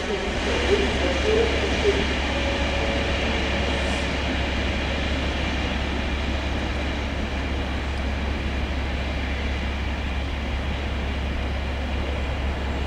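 A passenger train rumbles slowly away over the rails.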